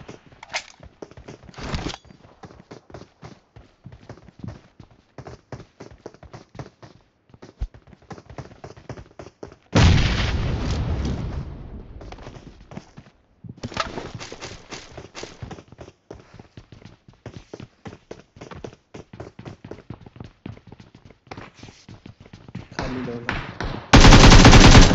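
Footsteps thud quickly on hard ground and wooden stairs.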